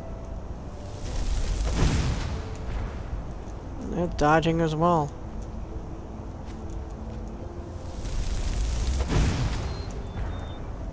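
A burst of flame whooshes and roars.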